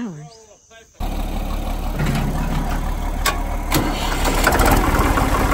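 A tractor engine cranks and starts.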